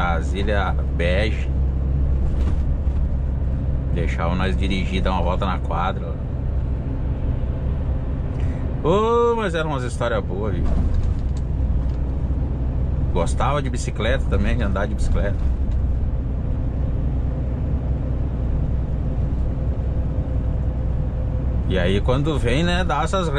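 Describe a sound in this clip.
A truck engine drones steadily from inside the cab while driving.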